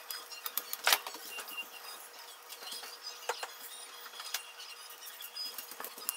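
A refrigerator door opens and thuds shut.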